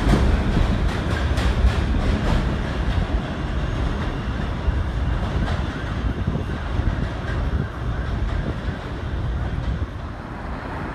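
A subway train rumbles away along elevated tracks.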